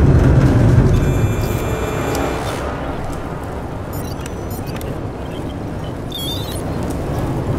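A handheld device beeps and chirps electronically.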